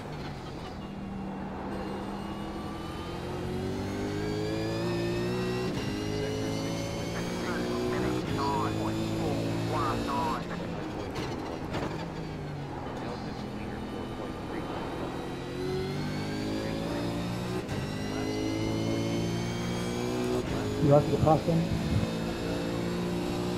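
A racing car engine roars, revving up and dropping as the gears change.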